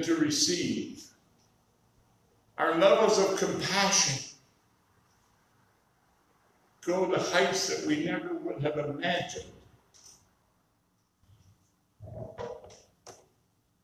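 An elderly man speaks calmly into a microphone in an echoing hall, with pauses between phrases.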